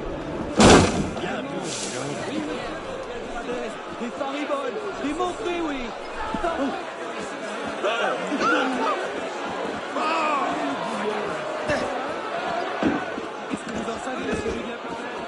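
A large crowd of men and women chatters and shouts nearby.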